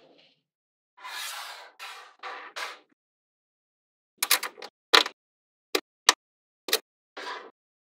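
Small magnetic balls click and snap together.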